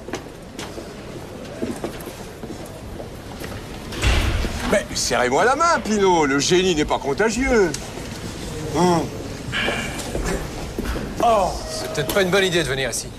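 Voices murmur in a busy echoing hall.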